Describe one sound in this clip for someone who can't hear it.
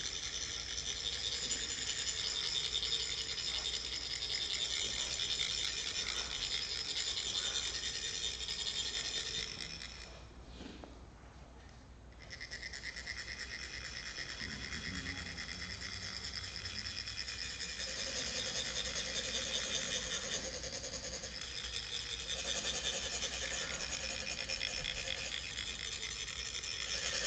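Metal funnels rasp steadily with a fast, buzzing scrape.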